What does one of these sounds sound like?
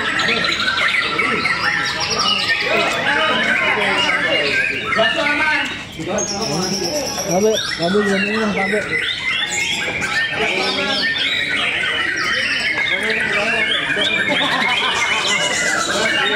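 Many caged birds chirp and sing loudly all at once.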